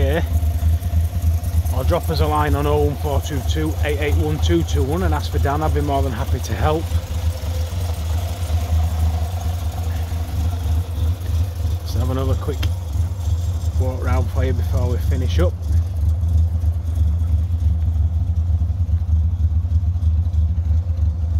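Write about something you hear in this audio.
A small car engine idles with a steady low hum.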